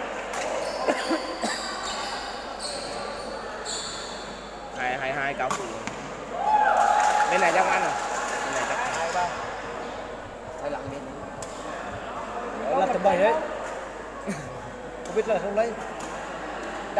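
Shuttlecocks are struck with sharp pops of rackets in a large echoing hall.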